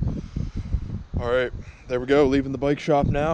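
A young man talks to the microphone outdoors.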